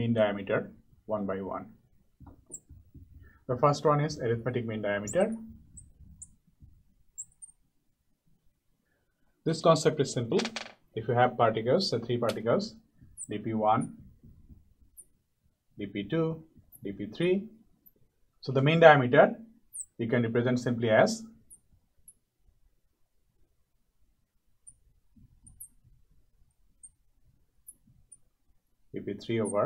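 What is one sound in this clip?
A marker squeaks on a glass board.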